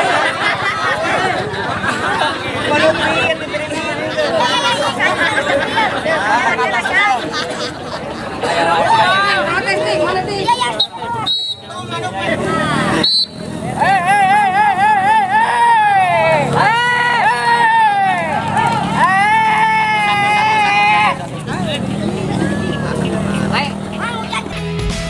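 A crowd of people talks and calls out outdoors.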